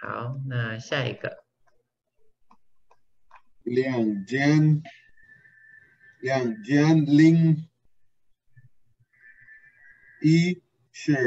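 A man speaks slowly and clearly, in short phrases, over an online call.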